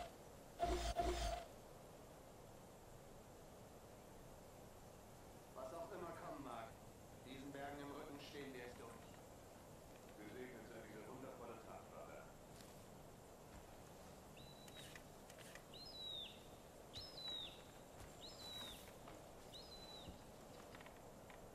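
Leaves and grass rustle as someone pushes through tall plants.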